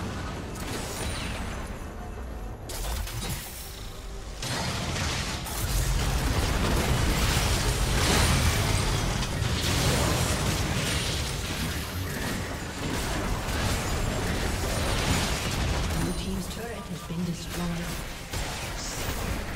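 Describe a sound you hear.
Video game combat effects clash, with gunfire and magic blasts.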